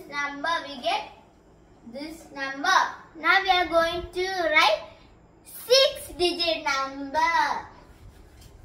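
A young girl speaks with animation, close by.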